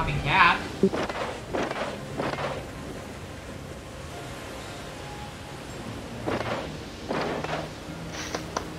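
Water rushes and splashes along a ship's hull.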